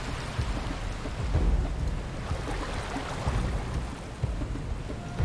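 Water splashes as a canoe is paddled through a stream.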